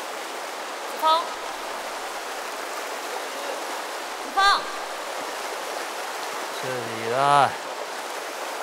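A young man calls out loudly.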